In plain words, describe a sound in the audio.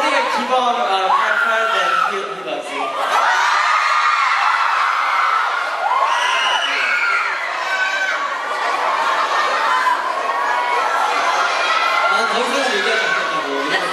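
A young man speaks into a microphone through loudspeakers.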